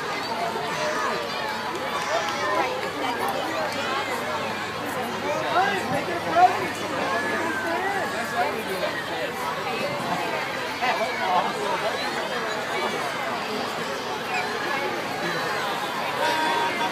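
Children shout and cheer along the street.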